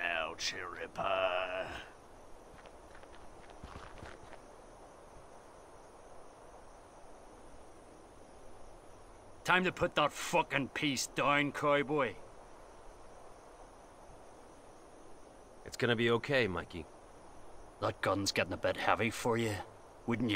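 A man speaks in a gruff, threatening voice.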